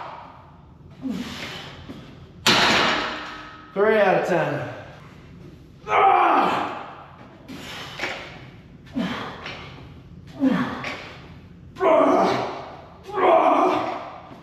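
A man breathes hard and grunts with effort.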